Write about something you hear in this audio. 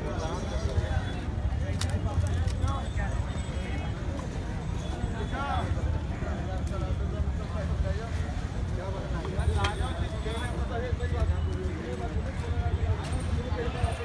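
A crowd of men chatters outdoors.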